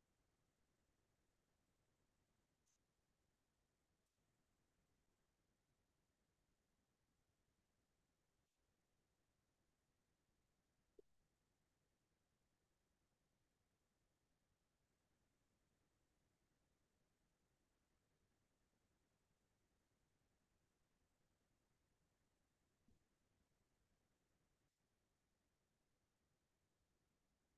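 A paintbrush brushes and dabs softly on paper.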